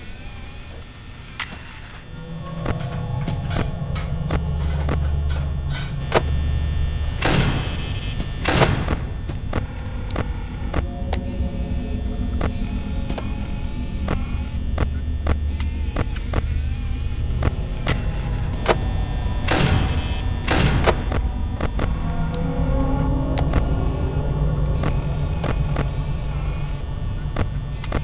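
Static hisses and crackles steadily.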